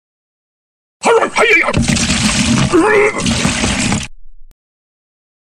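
A man vomits loudly with a gushing splash.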